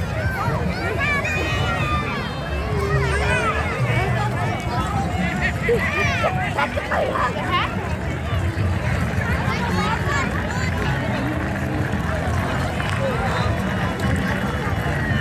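A crowd chatters outdoors along a street.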